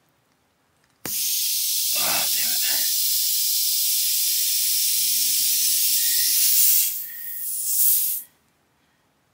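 Air hisses loudly and steadily out of a tyre.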